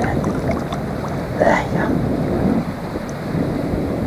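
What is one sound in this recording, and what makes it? A fish splashes as it slips into the water.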